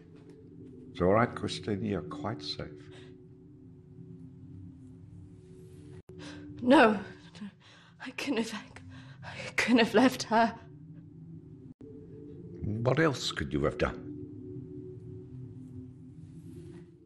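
An elderly man speaks calmly and gently close by.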